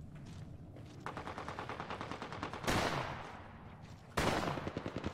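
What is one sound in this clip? Footsteps patter quickly over rocky ground.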